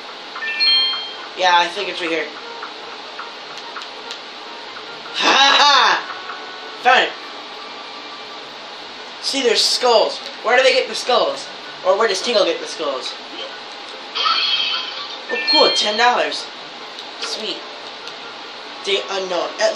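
Video game sound effects and chimes play from a television.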